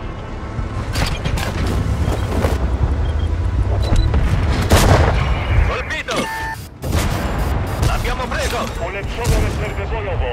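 Tank cannons fire with sharp bangs.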